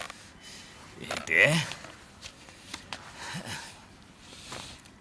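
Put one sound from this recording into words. An older man speaks with strain.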